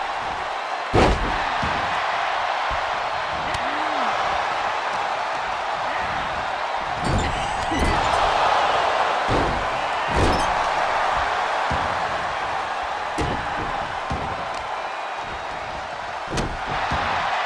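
Bodies slam onto a wrestling ring mat with heavy thuds.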